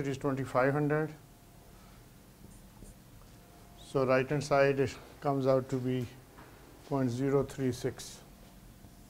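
An elderly man speaks calmly in short phrases.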